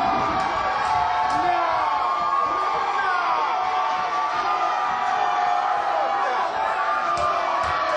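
Loud music plays through speakers in a large hall.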